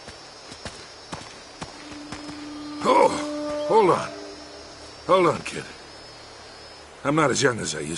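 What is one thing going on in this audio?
Footsteps rustle through dense foliage.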